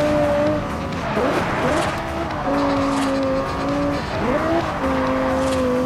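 A sports car engine drops in pitch as the car downshifts into a bend.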